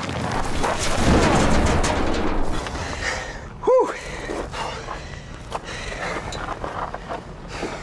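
Rubbish is shifted and clatters inside a metal bin.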